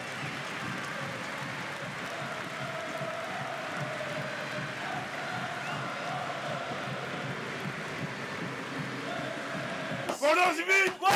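A large stadium crowd chants and roars in the distance.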